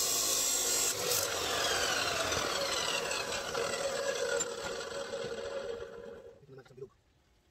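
A cut-off saw motor whines as it spins down.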